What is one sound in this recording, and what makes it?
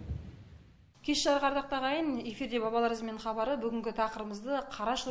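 A woman speaks clearly and calmly into a close microphone.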